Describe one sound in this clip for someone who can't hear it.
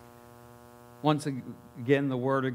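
A man speaks calmly through a microphone over loudspeakers.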